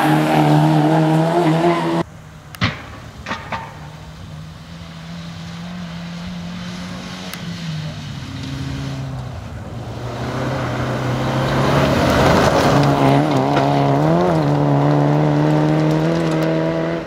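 A rally car engine roars and revs as the car speeds by.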